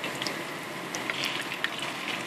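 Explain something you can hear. A metal spoon scrapes against a frying pan.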